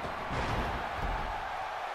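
A body thuds onto the canvas.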